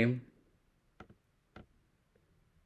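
Cards tap lightly on a table.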